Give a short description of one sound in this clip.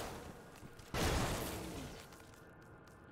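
Electric magic crackles sharply.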